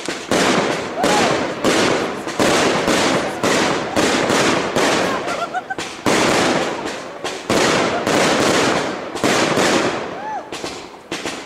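Firework rockets whistle as they shoot upward.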